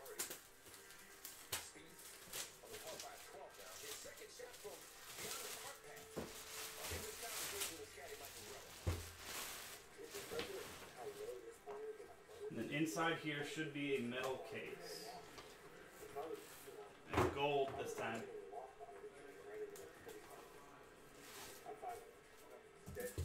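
A man handles a cardboard box with light knocks and rustles.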